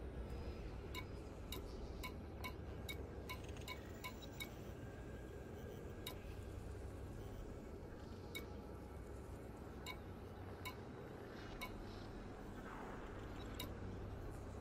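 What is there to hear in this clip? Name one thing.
Short menu ticks click as a list scrolls.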